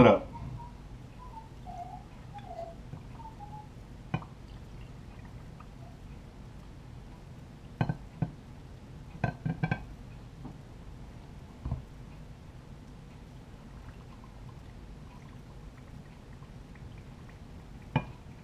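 Liquid pours into a glass jar.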